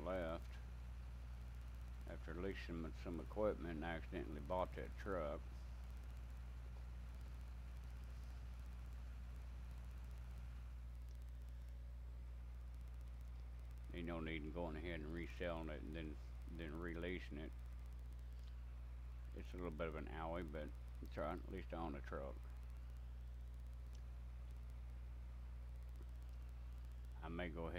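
An elderly man talks calmly through a webcam microphone.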